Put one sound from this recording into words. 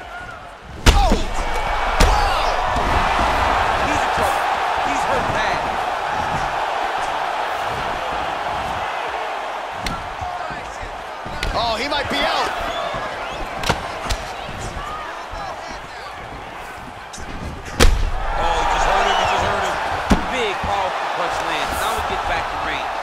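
A crowd roars and cheers loudly in a large arena.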